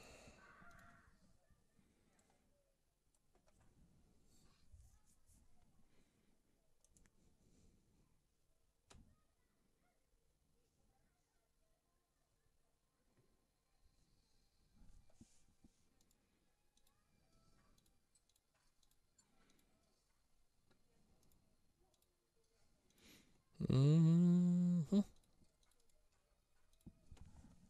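A man speaks quietly and calmly into a close microphone.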